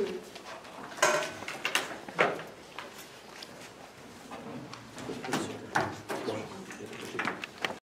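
Papers rustle and shuffle close by.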